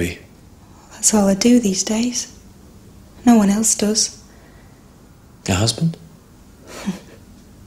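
A young woman speaks in a low, unsettled voice.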